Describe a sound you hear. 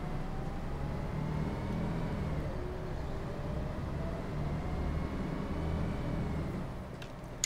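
A bus engine hums steadily while driving along a road.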